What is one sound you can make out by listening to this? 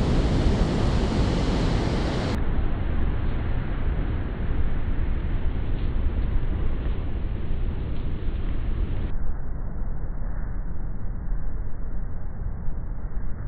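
Wind blows hard outdoors.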